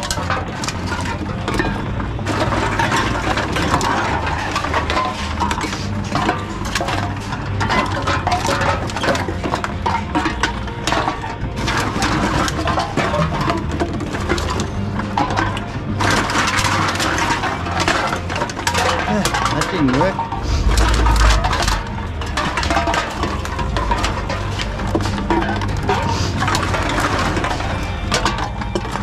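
Empty cans and bottles clatter and clink as they are handled.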